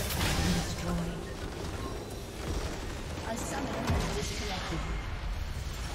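Spell effects crackle and boom in a busy fight.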